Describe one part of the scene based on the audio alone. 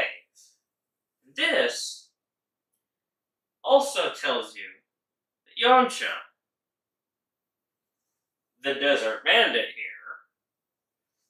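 A man speaks with animation in short bursts, close by.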